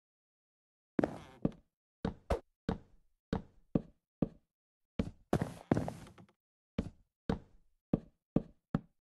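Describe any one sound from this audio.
Wooden blocks are placed with short knocking thuds in a video game.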